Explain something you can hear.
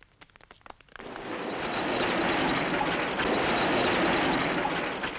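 Vehicle engines roar loudly as they drive past.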